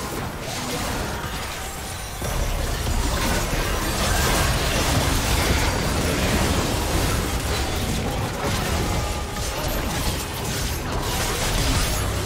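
Video game spells crackle, whoosh and boom in a busy battle.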